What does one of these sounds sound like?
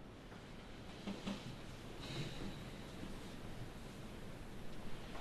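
A woman speaks quietly.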